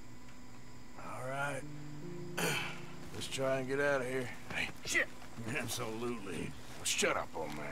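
A man speaks in a low, gruff voice.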